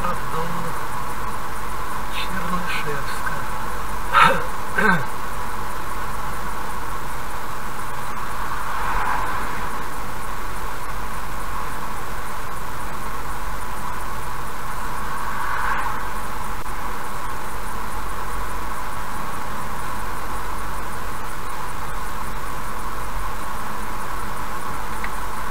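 Tyres hum steadily on a road as a car drives at speed.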